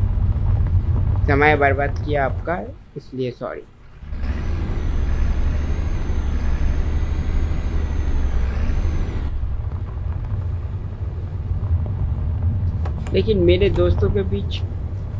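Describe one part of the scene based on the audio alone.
A bus engine rumbles low and steadily.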